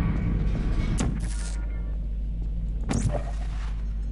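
A toy-like gun fires with a sharp electric zap.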